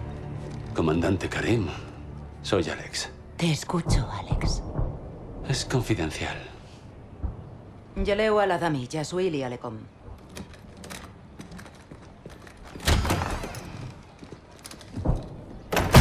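A young man speaks firmly and calmly, close by.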